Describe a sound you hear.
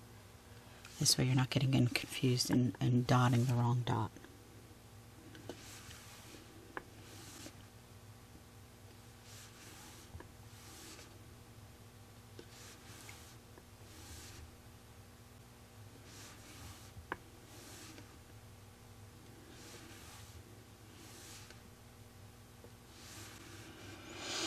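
A tool softly dabs paint onto a hard surface, again and again.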